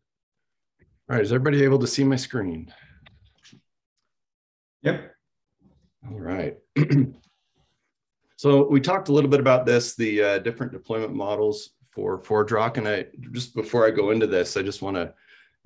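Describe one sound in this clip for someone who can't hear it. A man speaks calmly through a microphone in an online call.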